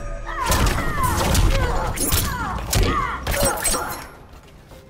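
Heavy punches and kicks land with loud thuds and cracks.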